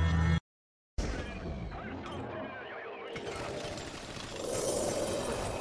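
Swords clang and clash in a fight.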